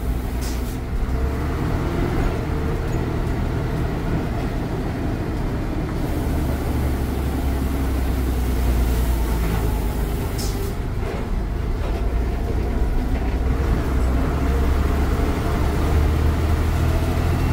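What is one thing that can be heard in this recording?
A bus body rattles and creaks over the road.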